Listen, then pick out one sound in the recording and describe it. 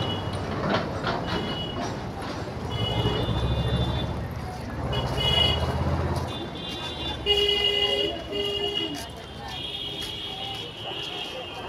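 A crowd of women chants loudly outdoors.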